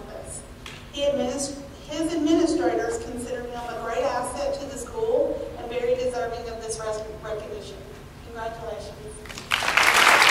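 A woman speaks over a loudspeaker in a large echoing hall.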